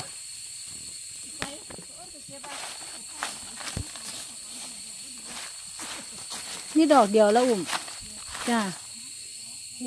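Dry leaves crunch and rustle underfoot.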